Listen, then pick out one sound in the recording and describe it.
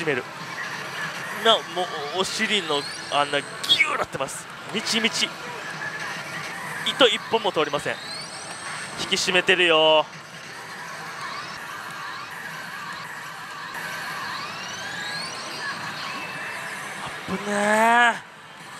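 A slot machine plays electronic music and sound effects.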